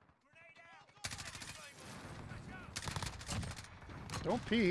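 Rapid gunshots crack in a game.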